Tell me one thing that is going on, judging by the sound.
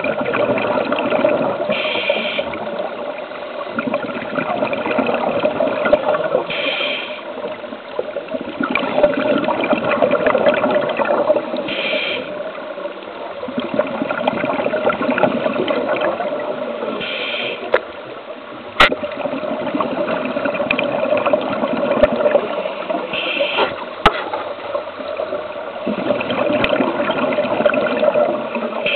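Air bubbles from scuba divers gurgle and rumble steadily underwater, with bursts every few seconds.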